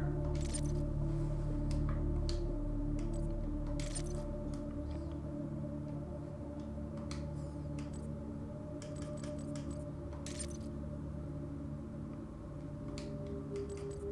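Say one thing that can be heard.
Short electronic menu clicks and whooshes sound now and then.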